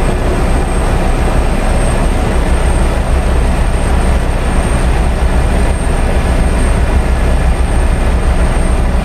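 Tyres roll on a road with a steady hiss.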